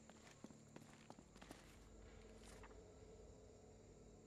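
Paper pages rustle as a notebook is opened.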